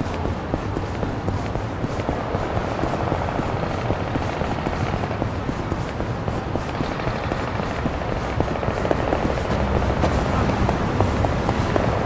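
Quick footsteps run on pavement.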